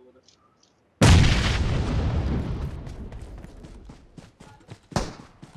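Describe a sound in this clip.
A smoke grenade bursts and hisses loudly, then slowly fades.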